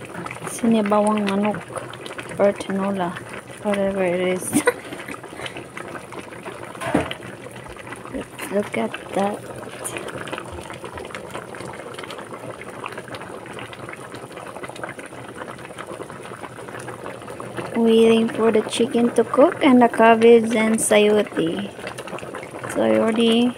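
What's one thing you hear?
A silicone spatula stirs through soup in a pot.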